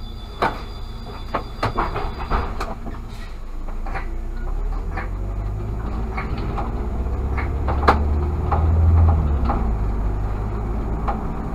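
A car engine hums steadily while driving along a street.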